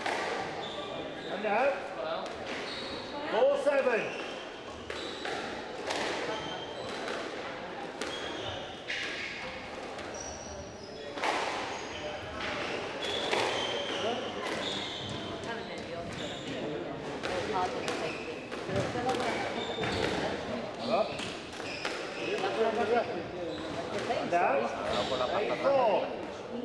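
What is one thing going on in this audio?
Shoes squeak and scuff on a hard court floor.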